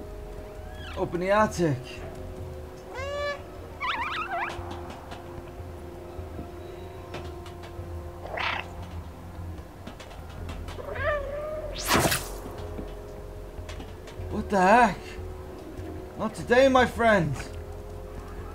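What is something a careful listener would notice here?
A cat meows in short, high cries.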